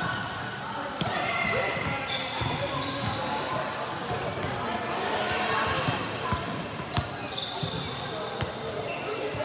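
A volleyball thuds as it is hit.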